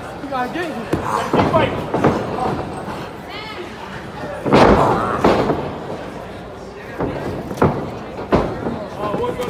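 Bodies thud heavily onto a mat.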